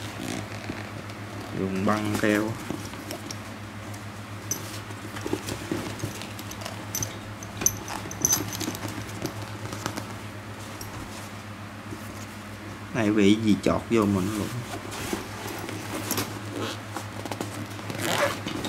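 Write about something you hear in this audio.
A zipper rasps as it is pulled along a bag.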